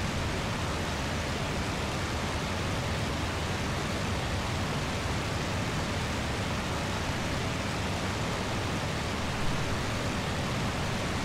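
Wind rushes past an aircraft in flight.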